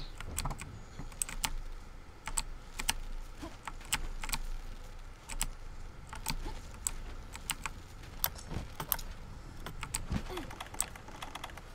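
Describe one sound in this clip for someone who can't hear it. Short, sharp game sound effects click and chime again and again.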